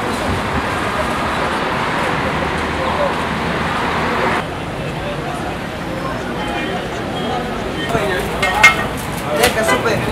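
A crowd murmurs and chatters in a busy street.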